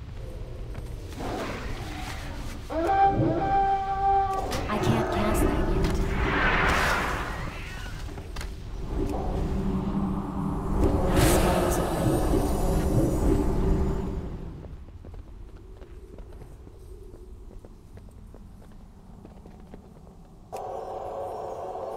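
Fantasy spell effects whoosh and shimmer in a video game battle.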